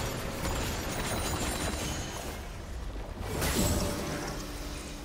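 Magic spell effects whoosh and crackle in a fight.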